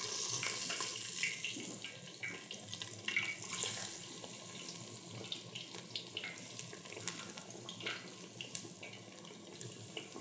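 Light clicks and taps of hands working with food.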